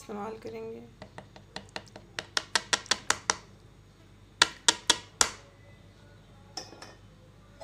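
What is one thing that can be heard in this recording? A plastic strainer taps sharply against the rim of a tub.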